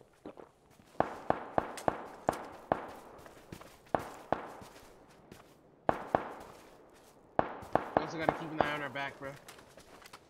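Footsteps rustle steadily through grass.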